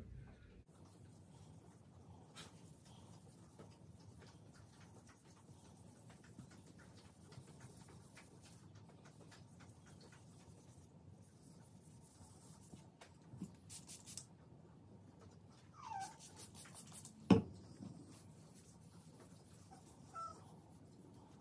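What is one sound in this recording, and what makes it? A pad rubs and squeaks softly along a smooth surface.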